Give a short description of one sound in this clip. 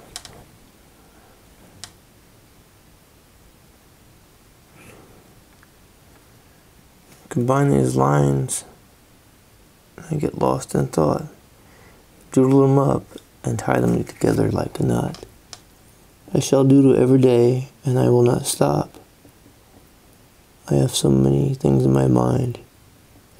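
A marker pen taps and scratches softly on paper.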